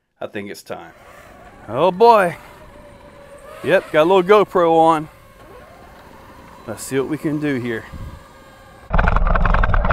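A small electric motor whines, rising and falling in short bursts.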